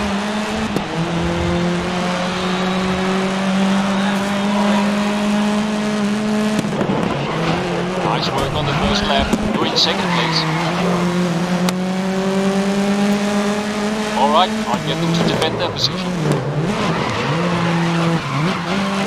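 A racing car engine roars at high revs, dropping in pitch as the gears change.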